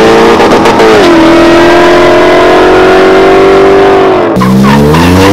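A car engine roars as a car races away.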